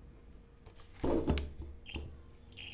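A glass jar clinks on a table.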